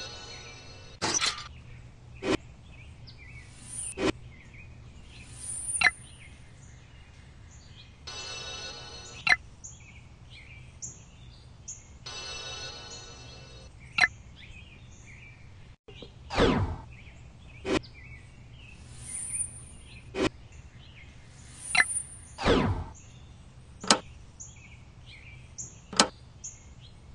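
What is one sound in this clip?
Short game sound effects chime and whoosh again and again.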